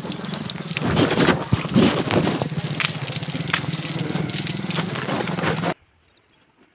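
Water splashes onto the ground.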